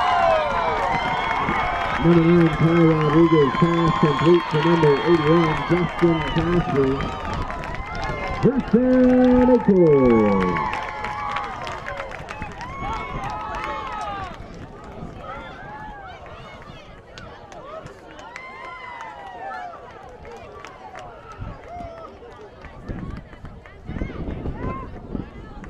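A crowd cheers and shouts loudly outdoors.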